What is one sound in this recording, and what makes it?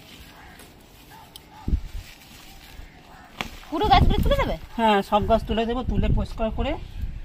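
Leafy plants rustle as they are pulled and handled.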